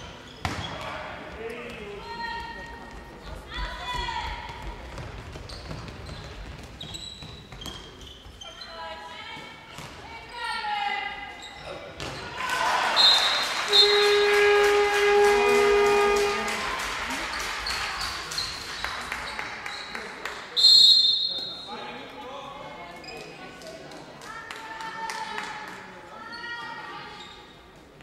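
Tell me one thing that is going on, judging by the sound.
A handball bounces and thuds on a hard floor in a large echoing hall.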